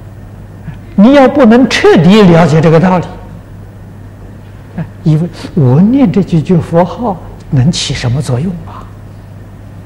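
An elderly man speaks calmly and expressively into a close microphone, with pauses.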